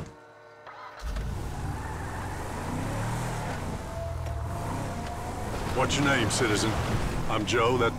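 A car engine hums as the car drives along.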